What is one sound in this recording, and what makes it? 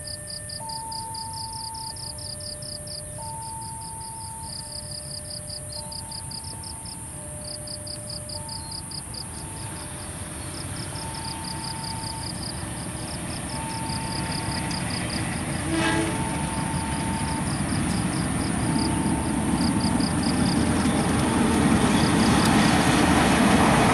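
A train rumbles along distant tracks, growing louder as it approaches.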